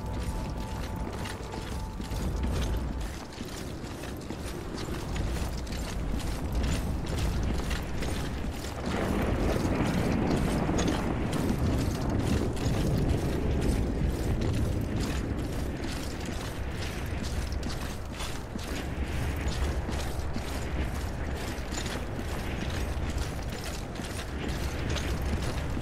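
Heavy footsteps thud steadily on hard ground.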